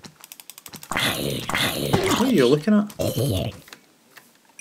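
A zombie groans and grunts.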